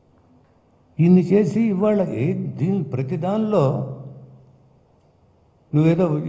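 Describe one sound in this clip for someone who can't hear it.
An elderly man speaks firmly into a microphone, close by.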